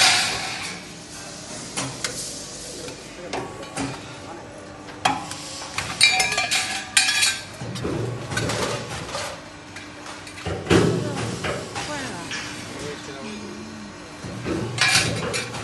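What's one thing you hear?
A metal roll-forming machine runs with a steady mechanical whir.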